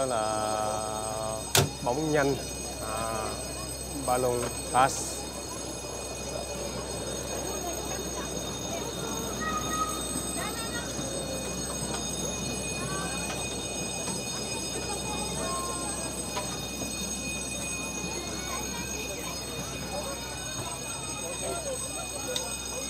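A crowd of adults and children chatters nearby outdoors.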